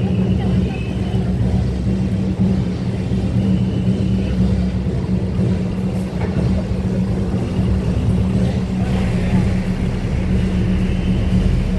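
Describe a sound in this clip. A heavy truck engine rumbles nearby.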